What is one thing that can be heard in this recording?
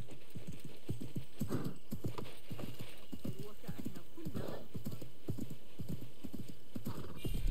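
A horse's hooves thud at a gallop.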